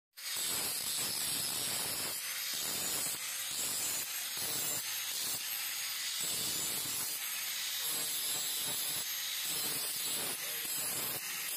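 Metal rasps and grinds in bursts against a spinning grinding wheel.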